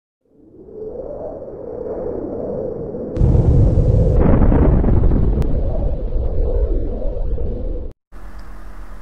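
A huge explosion booms and rumbles deeply, then roars on.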